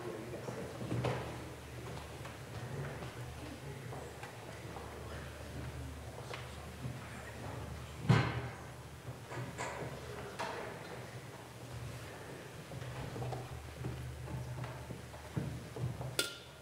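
Metal and glass vessels clink softly.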